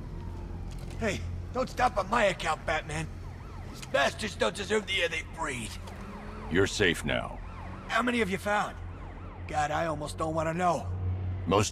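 A man answers, speaking tensely and with worry.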